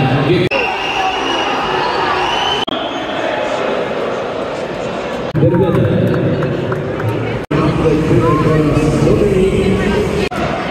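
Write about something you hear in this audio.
A large crowd cheers and chants in an echoing arena.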